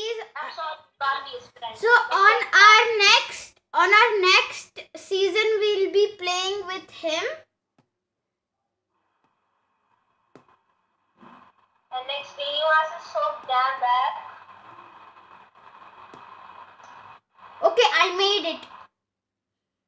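A young boy talks with animation over an online call.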